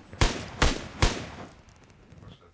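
Three loud rifle shots ring out in quick succession, each echoing briefly.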